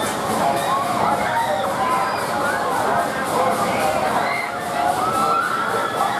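Riders scream and shriek on a swinging fairground ride.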